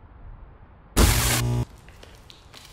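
Electric sparks burst with a loud sudden crackle.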